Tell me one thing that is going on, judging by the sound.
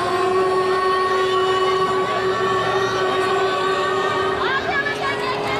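A group of young women sing through loudspeakers in a large echoing hall.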